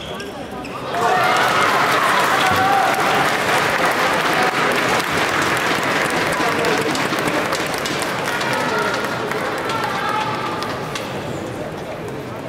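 A large crowd cheers and applauds loudly, then slowly dies down.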